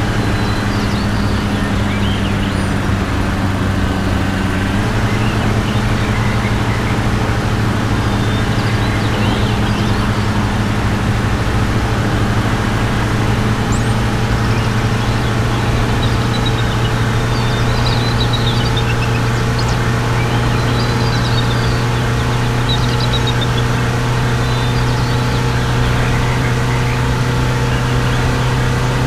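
A truck engine drones steadily, its pitch shifting up slightly.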